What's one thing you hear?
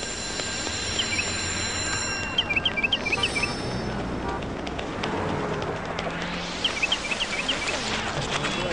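A cartoon bird chirps in short bursts.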